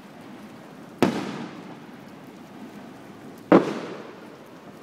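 Fireworks burst with loud booms that echo away.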